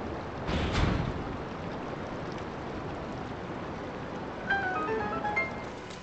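Water drains away with a soft rushing.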